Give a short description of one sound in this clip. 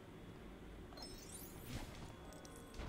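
Small coins jingle in a quick rising run.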